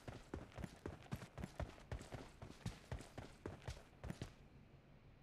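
Footsteps thud quickly across the ground.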